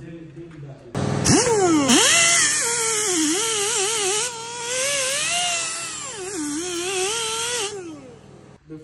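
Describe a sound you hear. A power drill spins a wire brush, grinding loudly against metal.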